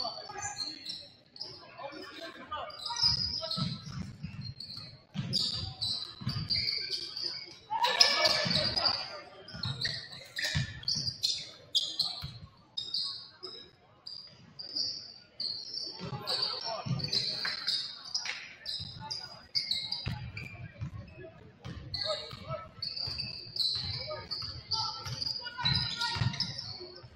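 A basketball bounces with dull thumps on a wooden floor.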